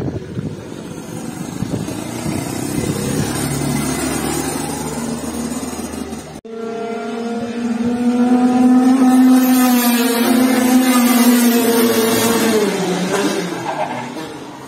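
A go-kart engine buzzes loudly as the kart speeds past, rising and falling in pitch.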